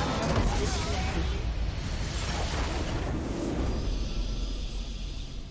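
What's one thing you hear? Game spells burst and explode with a loud, rushing roar.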